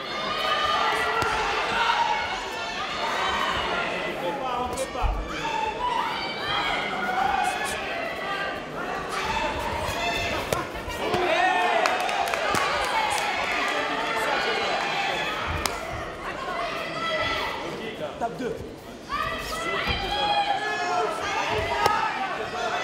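Punches and kicks thud against bodies.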